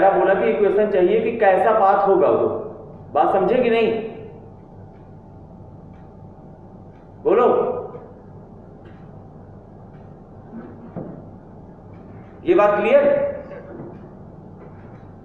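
A man speaks nearby in a lecturing tone, in short bursts with pauses.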